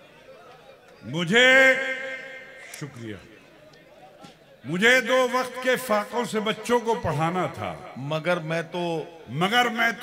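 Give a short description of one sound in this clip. An elderly man recites with animation through a microphone and loudspeakers.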